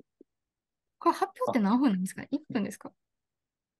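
A young woman speaks with animation through an online call.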